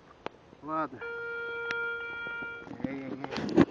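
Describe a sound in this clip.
A metal detector sounds a steady beep.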